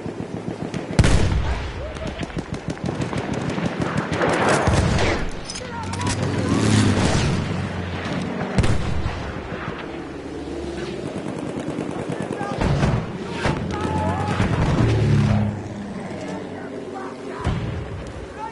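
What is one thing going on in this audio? A rifle fires with a sharp crack.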